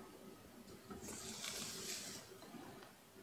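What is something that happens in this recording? Paper rustles as it slides across a table.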